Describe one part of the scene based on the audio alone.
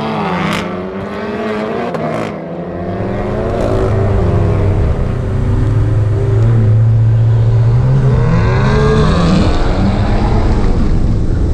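A car engine revs hard and roars as it accelerates, shifting gears.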